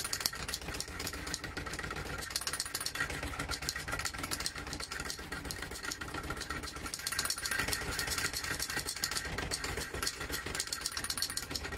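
A spinning drum rattles and clatters on its wooden frame.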